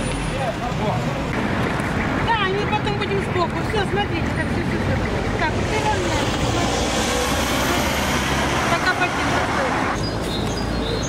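An elderly woman talks with animation nearby.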